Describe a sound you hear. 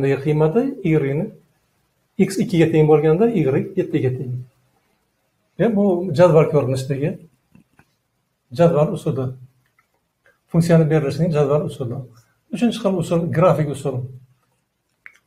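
An elderly man speaks calmly and clearly, as if explaining.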